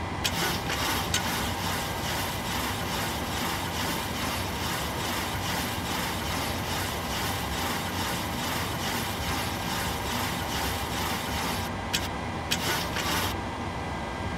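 An aircraft trim wheel spins with a rapid, rhythmic clacking.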